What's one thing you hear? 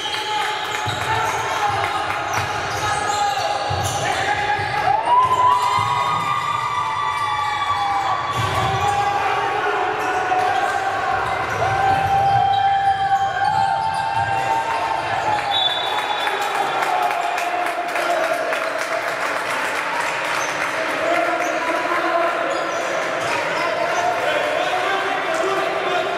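Basketball shoes squeak on a hardwood court in a large echoing hall.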